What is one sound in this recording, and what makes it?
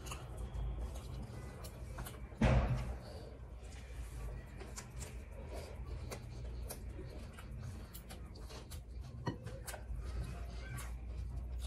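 Fingers mix and squish rice in a bowl close by.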